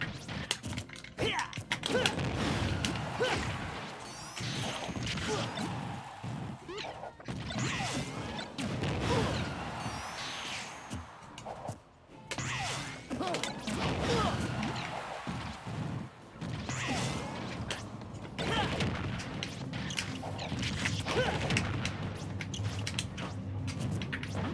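Punches and blasts from a fighting game thud and crackle in quick bursts.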